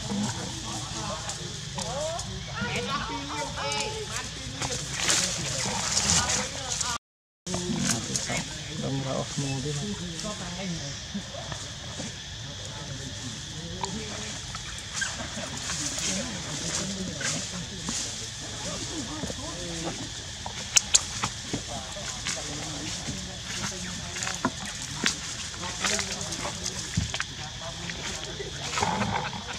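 Dry leaves rustle as monkeys move about on the ground.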